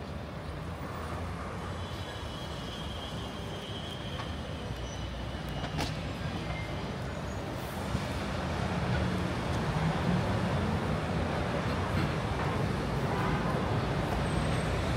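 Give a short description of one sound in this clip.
City traffic rumbles steadily outdoors, growing louder near the end.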